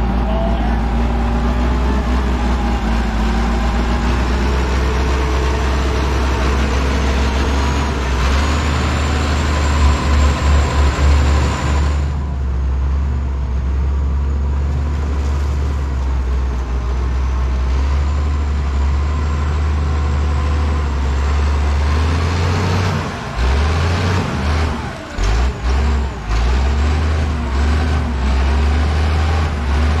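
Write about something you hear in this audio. Logs knock and thud against one another as a loader carries them.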